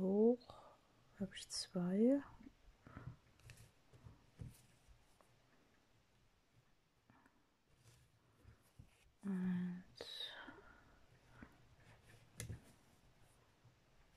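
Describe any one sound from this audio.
Thread rasps softly as it is pulled through stiff fabric.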